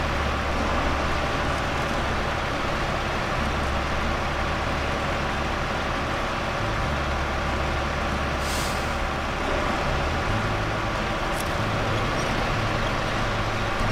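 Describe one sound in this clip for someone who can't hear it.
A heavy truck engine rumbles steadily at low revs.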